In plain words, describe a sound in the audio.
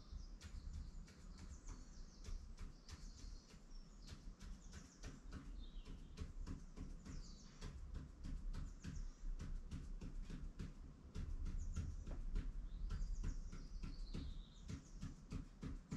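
A pen taps and scratches on paper in quick strokes.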